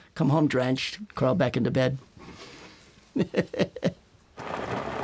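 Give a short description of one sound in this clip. An older man speaks calmly and warmly, close to a microphone.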